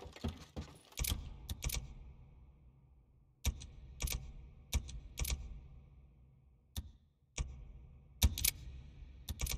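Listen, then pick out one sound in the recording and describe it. Menu clicks tick sharply now and then.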